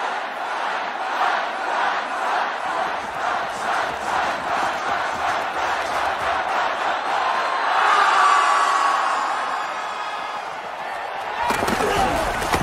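A large crowd cheers loudly in a stadium.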